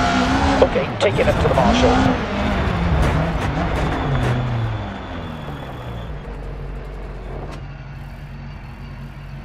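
A rally car engine revs hard and then drops to a low idle as the car slows.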